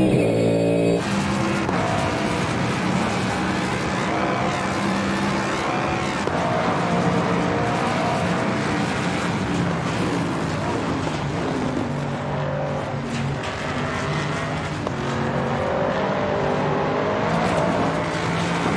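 A racing car engine roars at high revs, rising and falling as it shifts gears.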